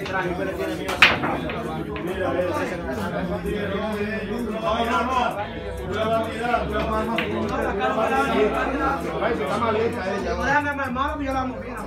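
Billiard balls knock together and roll across the table.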